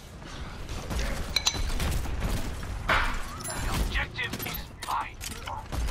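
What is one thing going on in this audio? A game weapon fires in quick bursts.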